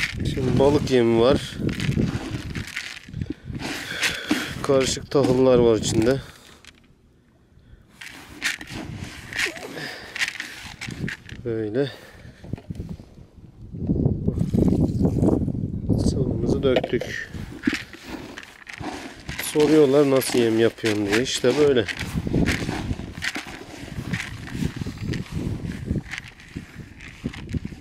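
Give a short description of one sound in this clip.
Hands stir and rustle dry grain in a plastic bucket.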